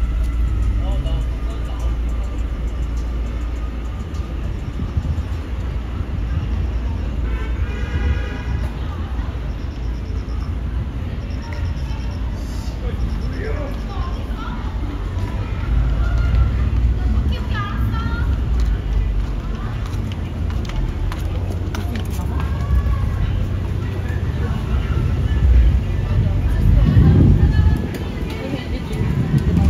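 Low city traffic rumbles steadily outdoors.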